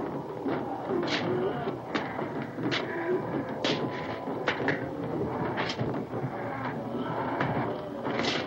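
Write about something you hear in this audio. A heavy wooden post knocks and creaks.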